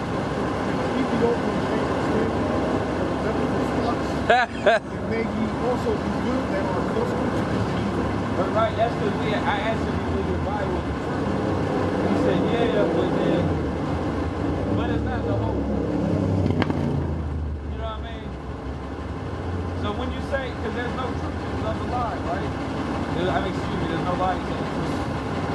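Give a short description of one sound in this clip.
A man speaks nearby outdoors.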